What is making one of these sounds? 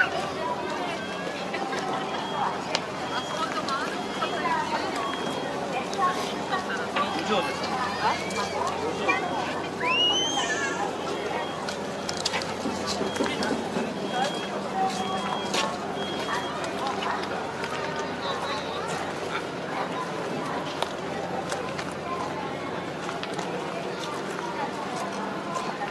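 A crowd murmurs and chatters in the background outdoors.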